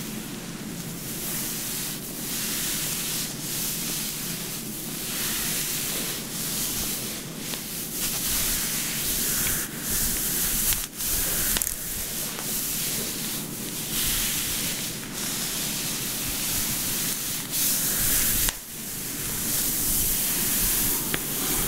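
Hands rub and knead over fabric with a soft rustle.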